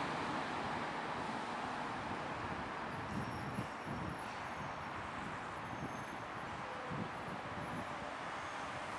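A propeller airliner's engines roar steadily as it lands.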